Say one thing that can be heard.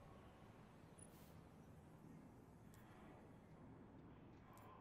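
Soft electronic menu blips sound now and then.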